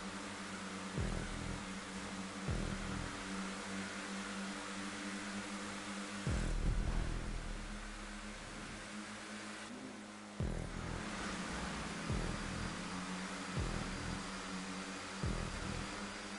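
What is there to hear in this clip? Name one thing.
Race car engines change pitch as gears shift.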